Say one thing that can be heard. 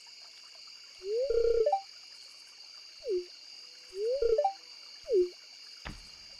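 A short game chime pops up and rises in pitch.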